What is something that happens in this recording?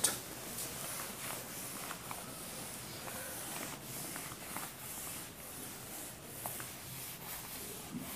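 A felt eraser rubs across a whiteboard.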